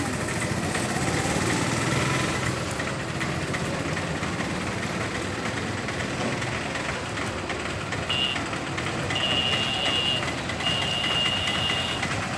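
Traffic hums along a nearby street.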